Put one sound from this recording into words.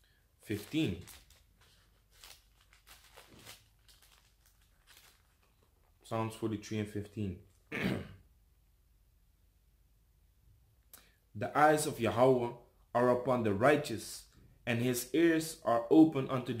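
A young man reads aloud calmly, close by.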